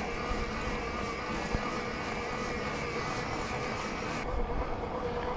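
Wind rushes past a moving bicycle.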